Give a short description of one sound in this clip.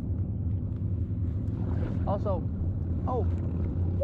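A kayak paddle dips and splashes in the water.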